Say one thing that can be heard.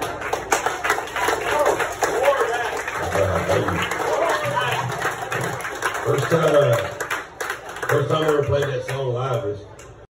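An acoustic guitar strums through a loudspeaker.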